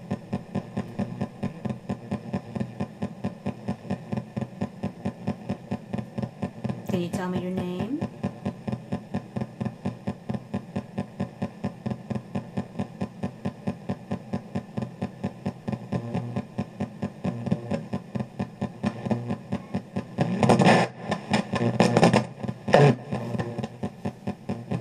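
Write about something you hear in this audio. Music with a steady, fast thumping beat plays from a loudspeaker.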